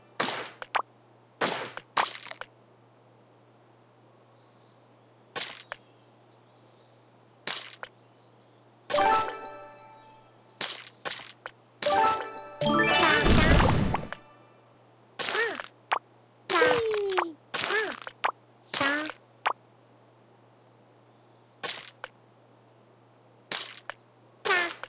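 Game sound effects pop and chime as blocks are cleared.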